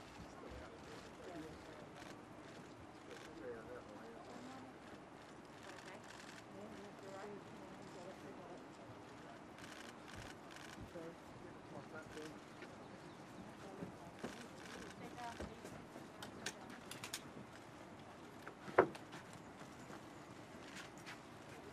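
A crowd murmurs nearby outdoors.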